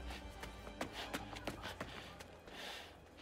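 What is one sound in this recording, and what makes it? Heavy boots march on hard ground.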